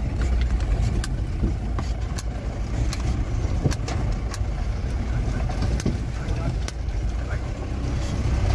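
A vehicle rattles and knocks over a bumpy dirt track.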